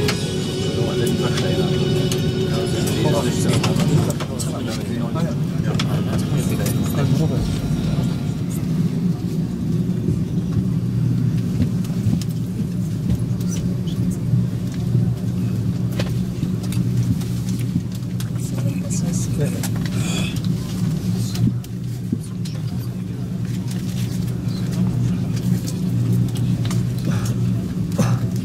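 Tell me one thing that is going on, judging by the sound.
An airliner's wheels rumble over joints in the taxiway.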